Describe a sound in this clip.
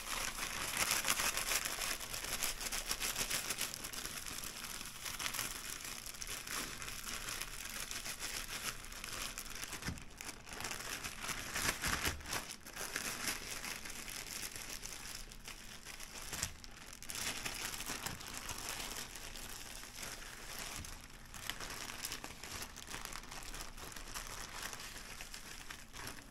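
A plastic bag rustles and crinkles as it is shaken close by.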